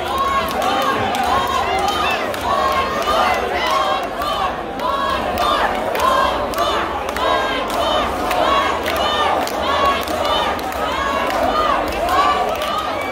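Loud live music plays through loudspeakers in a large hall.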